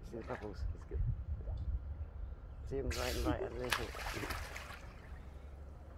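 A seal splashes in the water as it dives.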